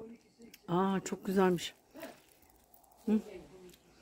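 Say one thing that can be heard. Cherry stems snap softly as a hand picks fruit from a branch.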